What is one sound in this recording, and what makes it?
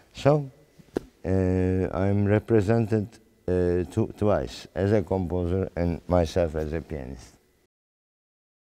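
A middle-aged man speaks calmly and thoughtfully close by.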